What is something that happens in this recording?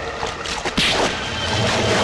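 Water splashes as a man swims hard.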